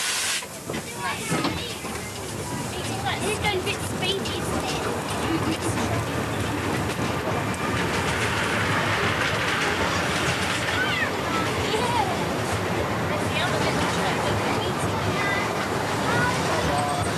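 A small train rumbles and clatters along the track.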